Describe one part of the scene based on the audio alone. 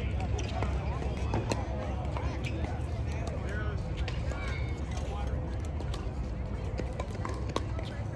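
Paddles hit plastic balls with sharp pops in the distance outdoors.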